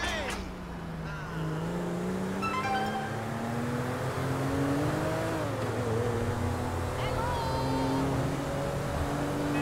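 A car engine hums steadily and rises in pitch as the car speeds up.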